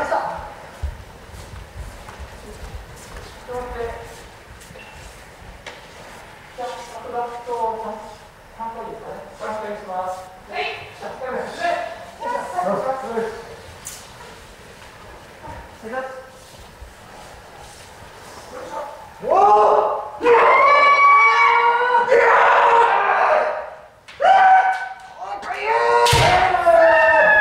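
Kendo fighters shout loud kiai in an echoing hall.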